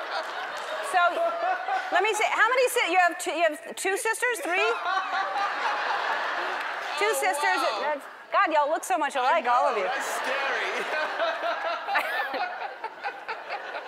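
A man laughs heartily.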